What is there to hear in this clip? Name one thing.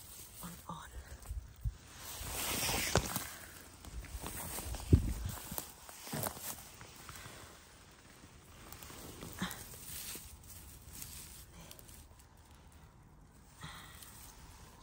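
Dry bracken and pine needles rustle and crackle as a hand pushes through them.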